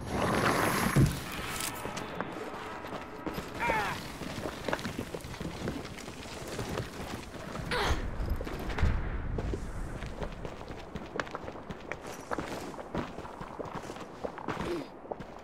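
Small footsteps patter quickly on stone.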